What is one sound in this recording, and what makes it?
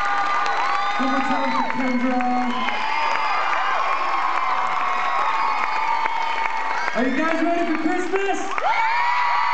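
A young man speaks through a microphone over loudspeakers.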